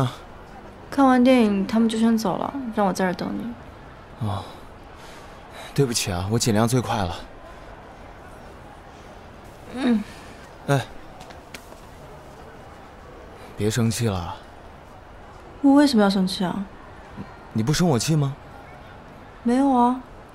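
A young woman speaks quietly and nearby.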